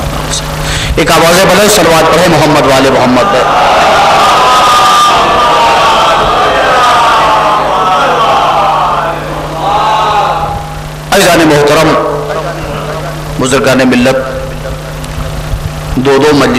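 A man speaks into a microphone, reciting in a rising and falling chant.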